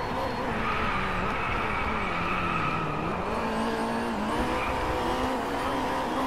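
A race car engine drops in pitch as it slows, then revs up again as it accelerates.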